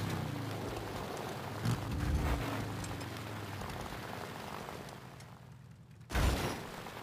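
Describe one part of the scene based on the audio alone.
A motorcycle engine rumbles as it climbs a rough hillside.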